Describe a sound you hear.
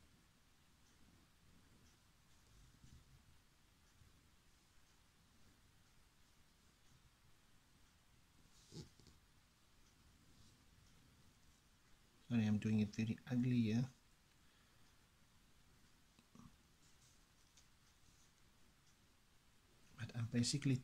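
A marker pen scratches softly on paper.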